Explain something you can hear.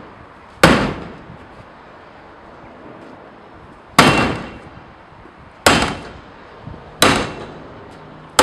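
A sledgehammer strikes a hard plastic bin with loud, ringing bangs.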